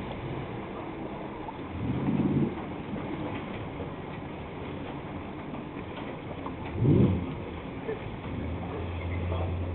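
A small boat's engine hums steadily across the water.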